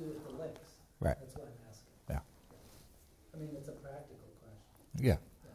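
An elderly man speaks slowly and calmly into a close microphone.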